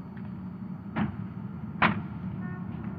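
A car door slams shut, twice in quick succession.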